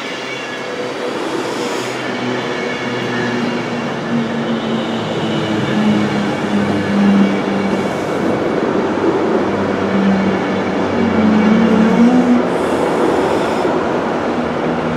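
An electric train hums and whines steadily as it passes.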